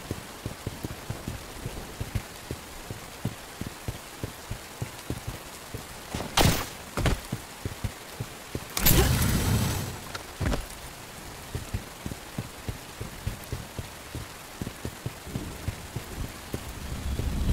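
Footsteps crunch steadily over the ground.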